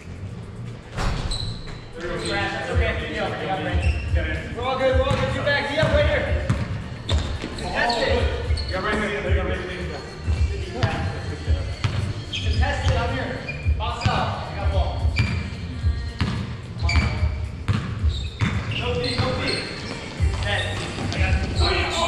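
Sneakers squeak on the hardwood floor.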